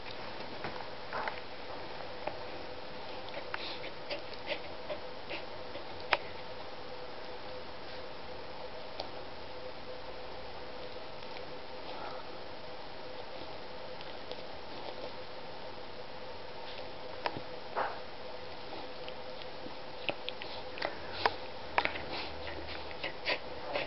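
A cat and a dog tussle close by with soft rustling and light thumps.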